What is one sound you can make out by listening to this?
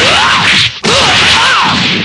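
A fist lands a heavy punch.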